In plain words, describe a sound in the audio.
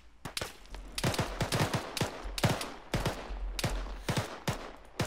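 Footsteps crunch on dry grass and gravel.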